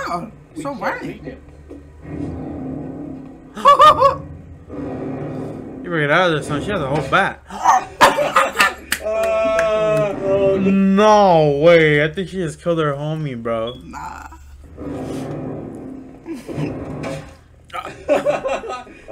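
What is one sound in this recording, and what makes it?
Two young men talk and exclaim with animation into a microphone.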